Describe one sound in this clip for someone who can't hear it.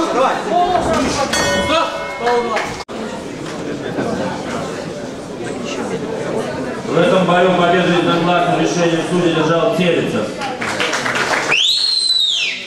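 A crowd murmurs and calls out in an echoing hall.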